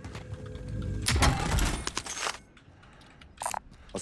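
A metal box creaks and clatters open.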